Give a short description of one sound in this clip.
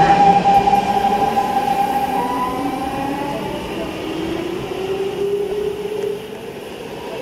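A train's motor whines as it rolls in.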